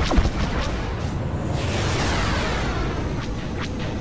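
A ship streaks past with a falling whoosh.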